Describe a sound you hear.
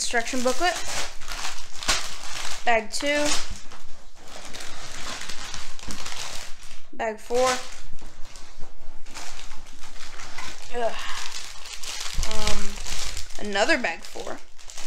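Plastic bags crinkle and rustle.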